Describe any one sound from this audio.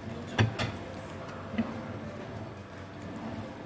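A plate clinks down on a table.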